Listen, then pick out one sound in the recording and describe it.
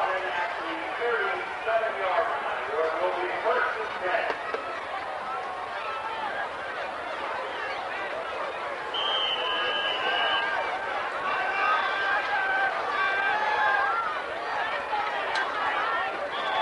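A large outdoor crowd cheers and chatters loudly from the stands.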